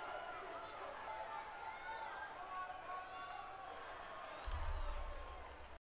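A large crowd cheers in an echoing arena.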